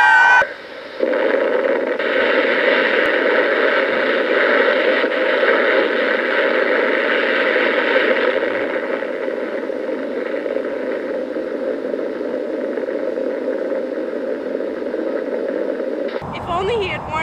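An old film soundtrack of an explosion rumbles and roars through a small loudspeaker.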